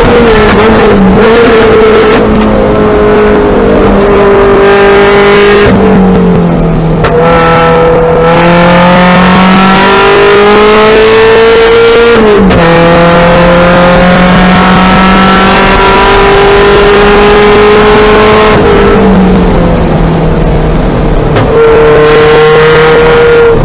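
A car engine roars loudly up close, rising and falling in pitch as it shifts gears.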